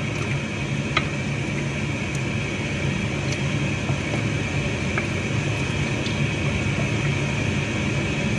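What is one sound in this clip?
A wooden spoon stirs food in a metal pot, scraping and knocking softly.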